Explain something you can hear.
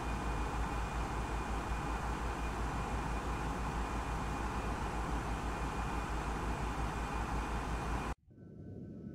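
Jet engines roar steadily, muffled as if from inside the aircraft.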